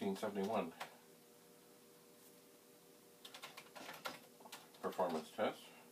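Keys clack on a keyboard being typed on.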